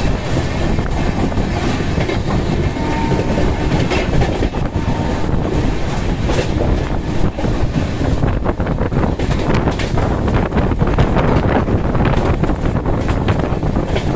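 Wind rushes past loudly.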